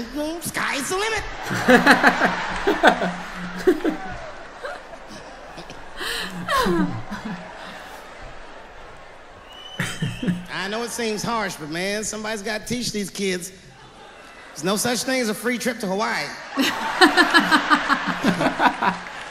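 A young man and a young woman laugh loudly, close to the microphone.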